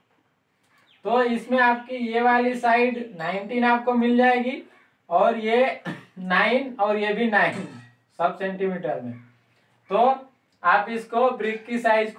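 A man lectures calmly into a nearby microphone.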